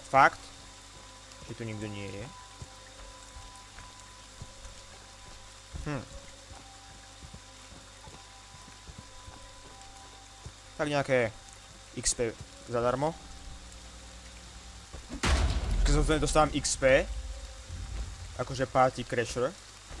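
Heavy footsteps tread slowly on wet ground.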